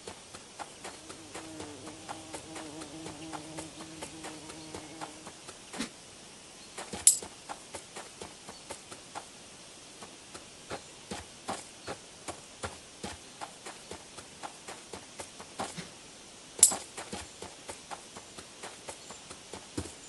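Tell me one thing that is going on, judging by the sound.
Light footsteps patter on grass.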